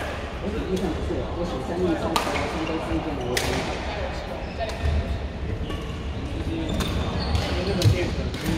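Shuttlecocks are struck with sharp pops of rackets, echoing in a large hall.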